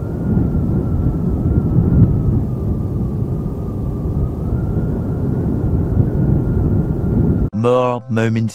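Wind rumbles loudly past a moving motorcycle.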